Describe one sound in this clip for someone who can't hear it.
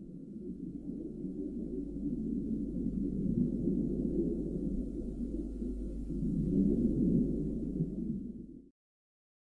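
Water churns in a low, muffled underwater rumble.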